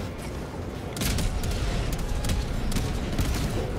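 A bomb explodes with a deep, rumbling boom.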